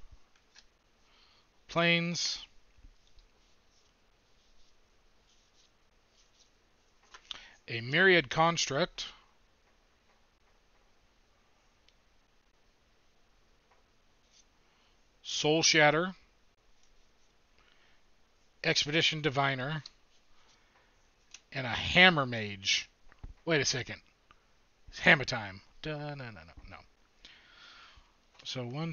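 Playing cards rustle and slide against each other in hands.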